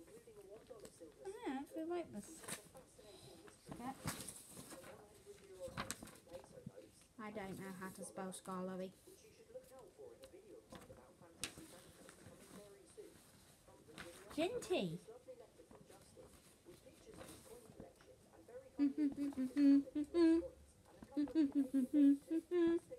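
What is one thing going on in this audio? A young boy talks close by, with animation.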